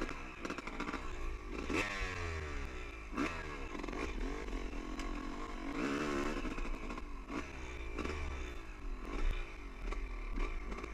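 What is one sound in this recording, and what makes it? Tyres crunch and rattle over loose stones.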